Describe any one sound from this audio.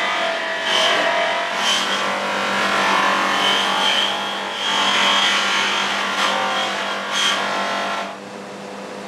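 A buffing wheel whirs and hisses loudly against metal.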